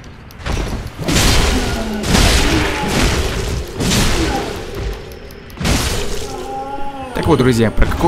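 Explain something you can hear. Blades clash and strike in a fight.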